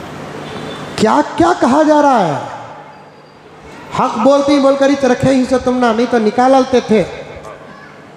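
A man preaches with fervour into a microphone, his voice ringing in a reverberant hall.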